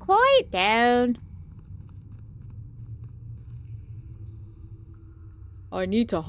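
A young woman speaks expressively into a nearby microphone, her voice rising and falling in pitch.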